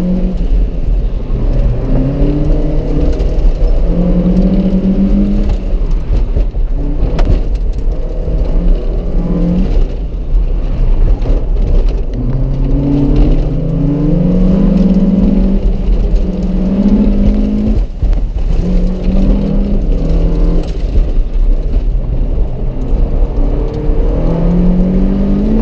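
A car engine revs hard, rising and falling as gears change.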